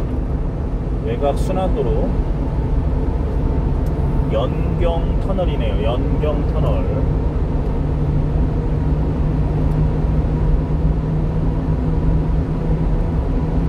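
Tyres roar on the road surface, echoing inside a tunnel.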